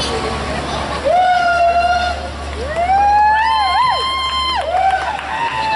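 Trumpets play a loud, held melody.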